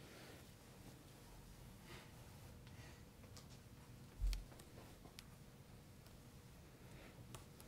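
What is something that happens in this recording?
Thin wire taps and scrapes lightly on a wooden table.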